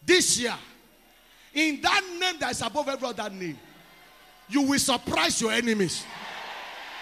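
A man preaches loudly and passionately through a microphone in a large hall.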